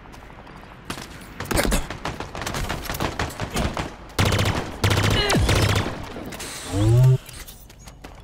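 A weapon fires loud, zapping energy shots.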